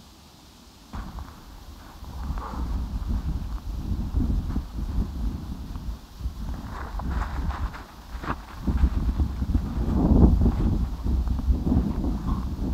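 Dry grass crackles as it burns.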